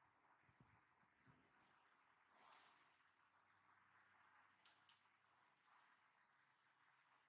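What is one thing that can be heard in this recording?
Soft cloth rustles as hands tug at a small garment.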